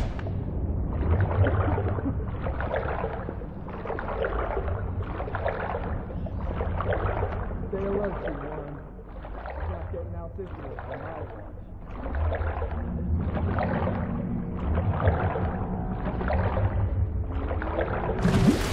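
Water swishes in a steady rhythm of underwater swimming strokes.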